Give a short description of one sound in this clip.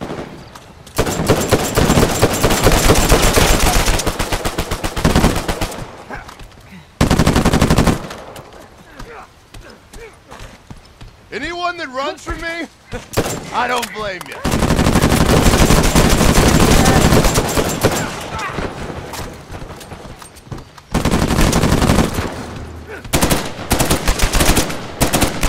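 Automatic rifles fire rapid bursts of gunshots.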